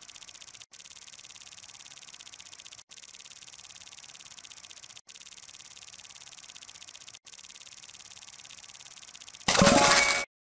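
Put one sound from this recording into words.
A prize wheel in a game ticks steadily as it spins.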